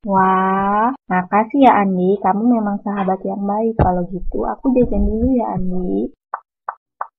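A child speaks with animation nearby.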